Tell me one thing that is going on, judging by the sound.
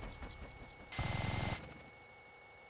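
A minigun fires a rapid burst.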